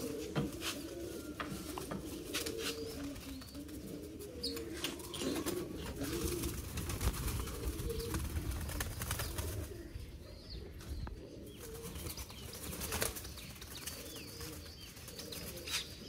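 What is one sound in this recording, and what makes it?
A wire cage rattles as a man handles it.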